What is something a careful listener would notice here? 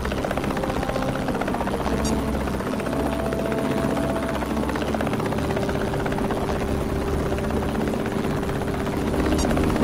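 A helicopter's rotor chops steadily close by.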